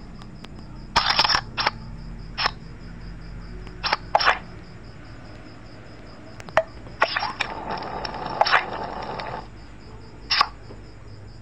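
Short card game sound effects snap and chime now and then.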